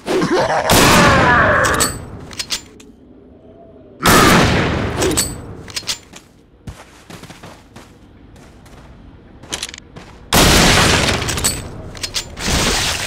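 A rifle fires loud shots that echo off rock walls.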